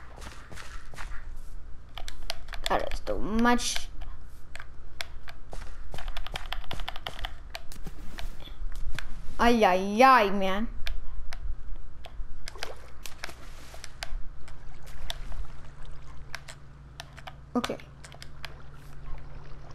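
Seeds are planted into soil with short, quick soft taps.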